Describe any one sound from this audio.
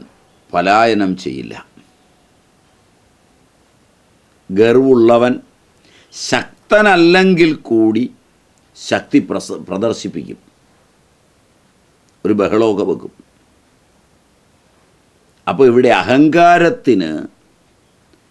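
An elderly man speaks calmly in short phrases with pauses, close to a microphone.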